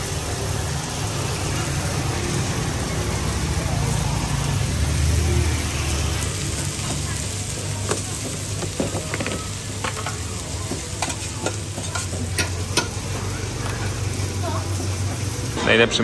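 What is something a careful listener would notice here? A metal spatula scrapes and clinks on a griddle.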